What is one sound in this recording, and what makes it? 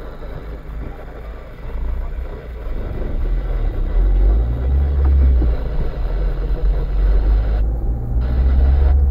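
A car engine hums low from inside and grows louder as the car pulls away.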